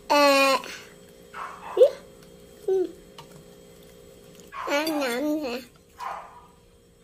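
A fork scrapes on a plate.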